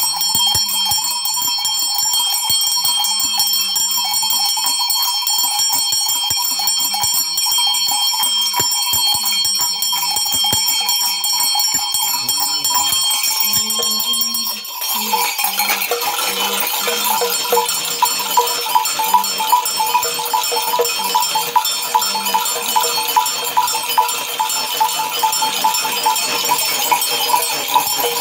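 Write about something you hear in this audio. Rattles of dried pods and shells shake in a steady rhythm.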